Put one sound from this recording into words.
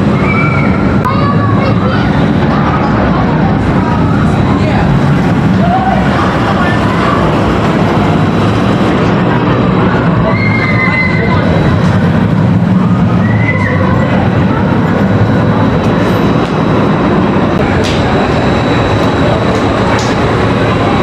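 A roller coaster roars and rattles along its track.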